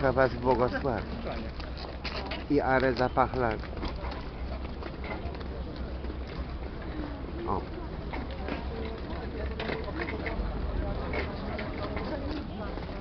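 Boots tramp on pavement as a column marches past.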